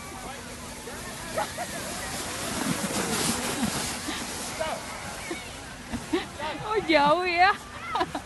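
A plastic sled scrapes and hisses over snow.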